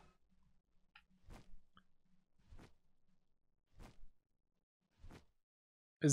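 Large wings flap in slow, heavy beats.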